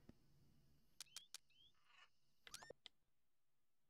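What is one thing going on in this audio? Short electronic beeps chirp as a game menu selection changes.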